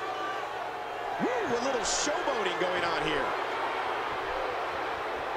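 A large crowd murmurs and cheers in a big arena.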